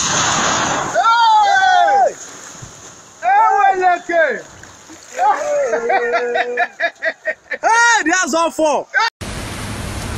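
A man shouts excitedly close by.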